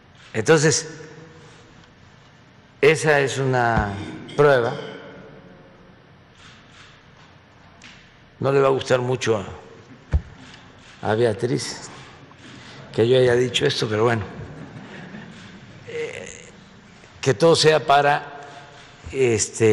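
An elderly man speaks into a microphone in short bursts, with pauses.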